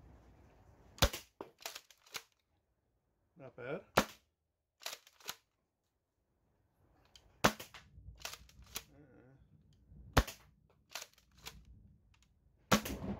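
A toy foam blaster fires with sharp snapping shots, one at a time.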